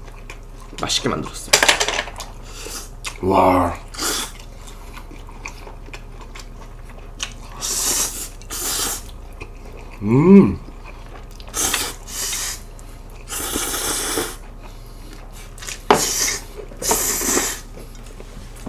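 Two young men loudly slurp noodles.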